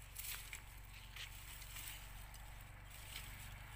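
Dry leaves and netting rustle as a net is pulled from the ground.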